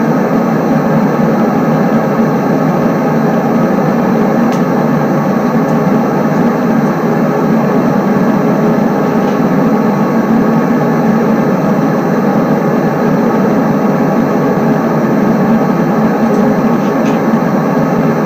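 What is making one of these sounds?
A locomotive engine drones steadily as a train runs along.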